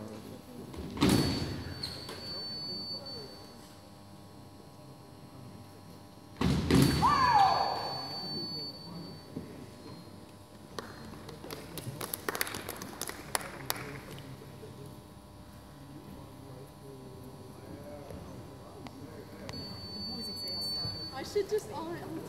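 An electronic scoring box beeps with a steady high tone.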